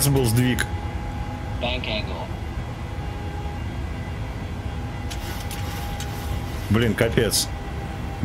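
A jet engine drones steadily in flight.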